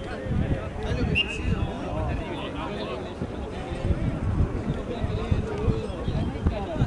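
A crowd of young people chatter outdoors at a distance.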